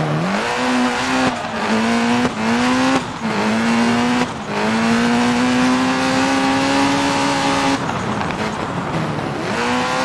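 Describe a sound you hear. A racing car engine revs hard, rising and dropping in pitch as the gears shift.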